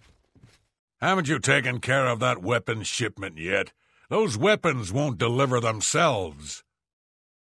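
A man with a deep, gruff voice speaks sternly.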